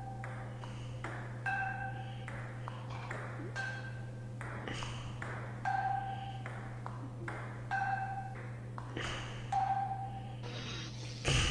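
A table tennis ball clicks back and forth between paddles and table.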